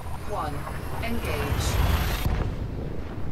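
A spaceship jumps to hyperspace with a rising rushing roar.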